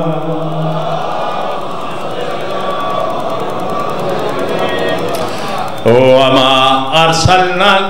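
A middle-aged man recites passionately through a microphone, echoing over loudspeakers.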